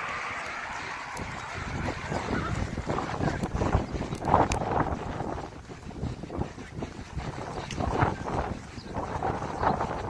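A horse's hooves thud softly on grass at a walk.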